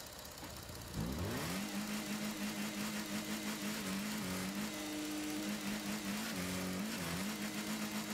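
A car engine starts up and hums steadily, revving briefly now and then.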